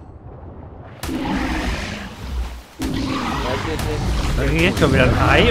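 Water splashes and sloshes around a swimming animal.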